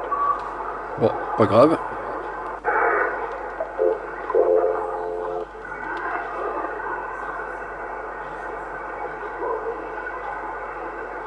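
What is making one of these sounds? A radio warbles and squeals as it is tuned across channels.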